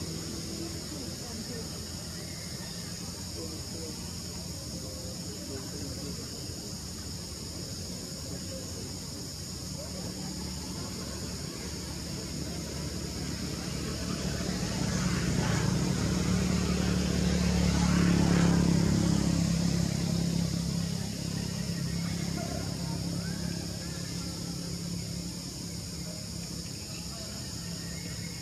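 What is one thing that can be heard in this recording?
Monkeys rustle softly through grass.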